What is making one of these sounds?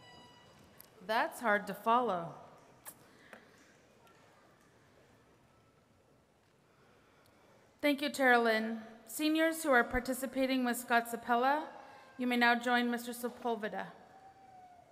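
A middle-aged woman speaks calmly through a microphone in a large hall.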